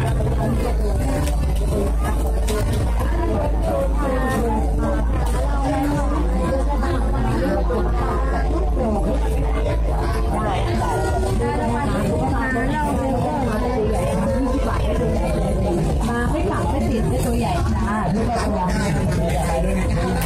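Music plays loudly from loudspeakers.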